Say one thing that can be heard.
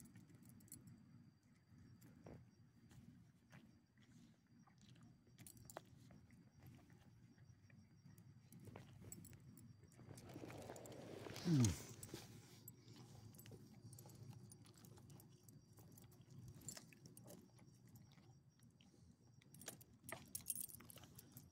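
Small dogs sniff and shuffle on gravel.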